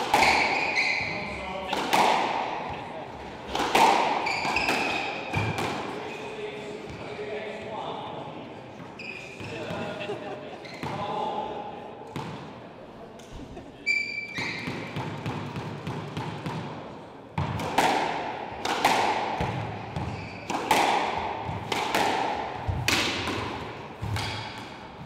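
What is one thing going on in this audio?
A squash ball smacks against the walls and rackets, echoing around a hard-walled court.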